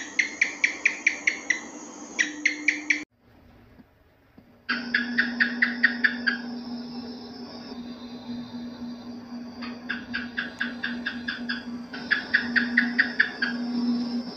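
Geckos chirp in quick clicking bursts.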